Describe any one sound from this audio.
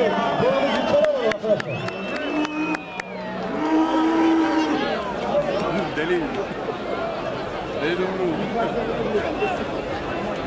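A large crowd of men shouts and cheers loudly outdoors.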